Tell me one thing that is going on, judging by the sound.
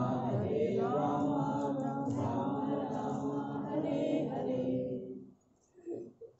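A man chants in a steady, drawn-out voice in an echoing hall.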